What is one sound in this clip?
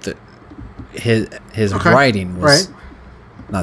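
A man speaks close into a microphone with animation.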